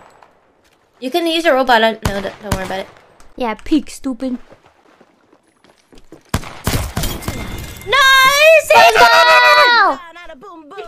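A young woman talks excitedly into a microphone, close up.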